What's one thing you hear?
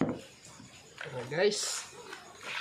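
Pieces of raw meat squelch and rustle as a hand stirs them in a bowl.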